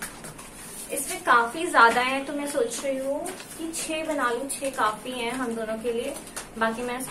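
A young woman speaks close by, calmly explaining.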